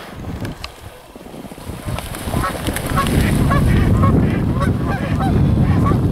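Geese flap their wings as they take off from the water.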